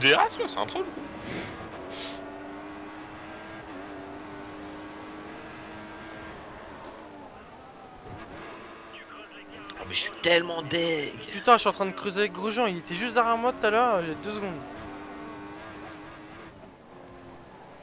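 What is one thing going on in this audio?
A racing car engine whines at high revs, rising and falling with gear changes.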